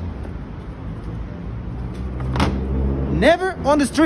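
A plastic bin lid thumps shut.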